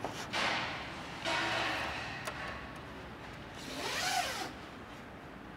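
A hand tool rubs and scrapes against a car's body panel in short strokes.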